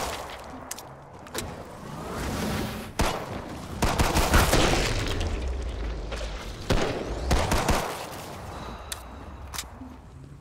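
A pistol is reloaded with metallic clicks.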